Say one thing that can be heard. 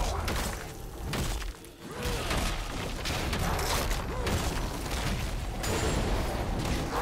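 Game spell effects crackle, whoosh and burst during a fight.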